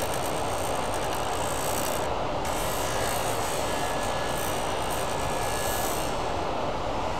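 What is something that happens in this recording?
A cutting tool scrapes and hisses against a spinning workpiece.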